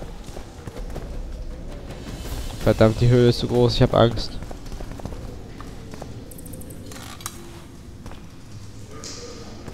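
Footsteps crunch slowly over rocky ground.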